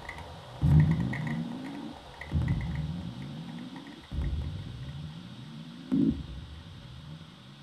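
A small electronic device gives out low, buzzing tones that swell in suddenly and slowly rise in pitch, again and again.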